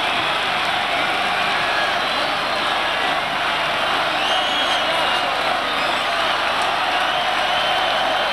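A large crowd cheers and screams loudly in a huge arena.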